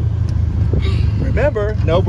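A young girl speaks with excitement close by.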